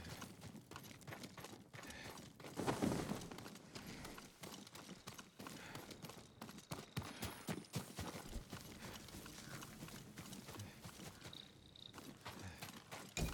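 Footsteps thud and scuff steadily on dirt and grass.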